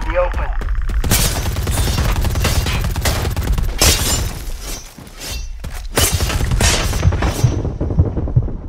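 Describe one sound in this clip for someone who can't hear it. Automatic gunfire rattles in rapid bursts, close by.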